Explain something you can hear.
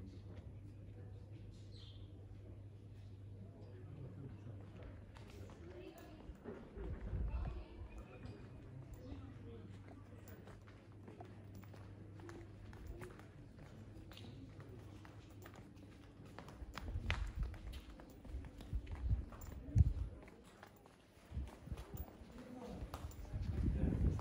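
Footsteps tap on stone paving nearby.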